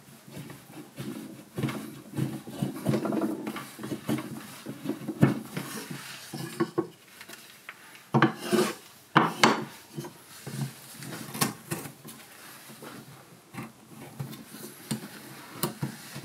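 A carving knife scrapes and shaves wood close by.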